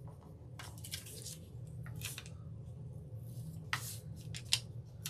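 Fingers rub and crinkle thin paper on a hard surface.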